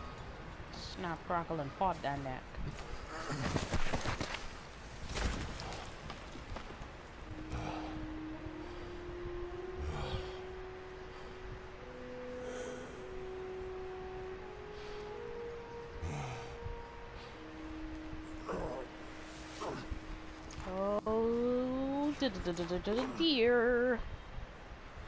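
A man groans and grunts in pain close by.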